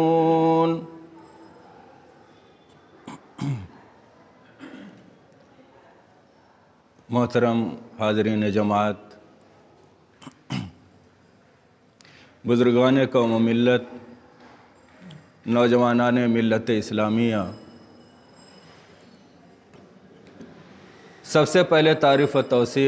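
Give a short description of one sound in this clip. A man recites in a melodious, drawn-out voice close to a microphone, with pauses between phrases.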